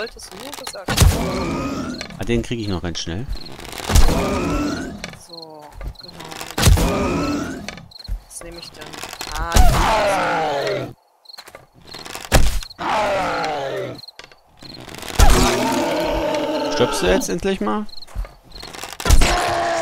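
A bow twangs as arrows are loosed, again and again.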